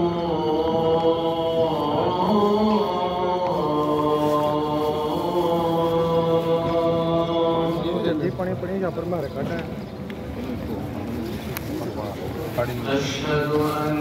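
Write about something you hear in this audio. A crowd of men murmurs and talks nearby.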